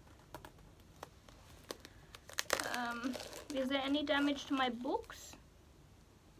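Plastic wrapping crinkles and clicks as a young woman handles a boxed set.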